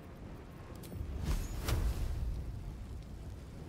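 A fiery explosion booms and rumbles.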